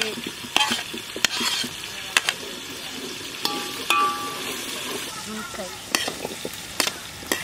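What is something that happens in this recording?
A metal spoon clinks against a steel pot and plate.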